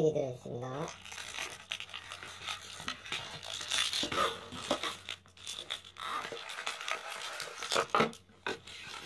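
Plastic-wrapped card packs crinkle and rustle as hands move them.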